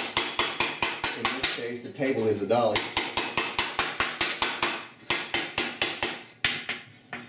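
A man strikes metal with a tool in quick, steady, ringing blows.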